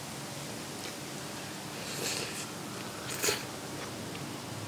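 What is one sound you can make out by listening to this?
A young woman chews and slurps noodles close to a microphone.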